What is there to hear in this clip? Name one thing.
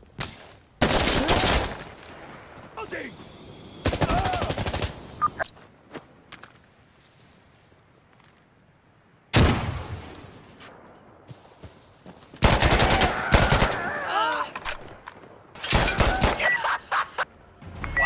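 Rapid bursts of automatic gunfire crack out loudly, again and again.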